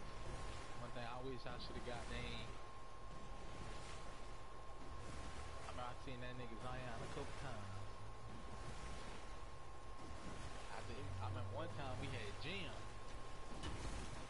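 Water splashes as a swimmer paddles through it.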